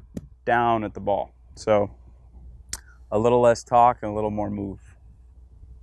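A man speaks calmly to the listener, close by.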